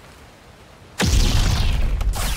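Lightsabers ignite with a sharp crackling hiss.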